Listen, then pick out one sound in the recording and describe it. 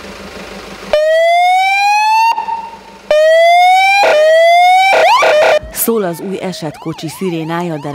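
An ambulance siren wails loudly in rising sweeps, then switches to a fast warbling yelp.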